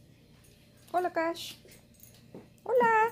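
A dog whines close by.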